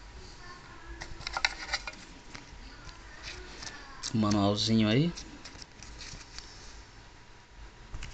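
Paper crinkles and rustles as a small booklet is handled.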